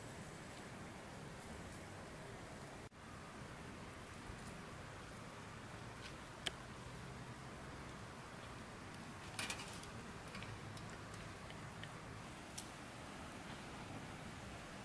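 Meat sizzles and crackles over a charcoal fire.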